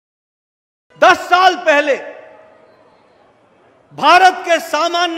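An older man speaks forcefully into a microphone over loudspeakers.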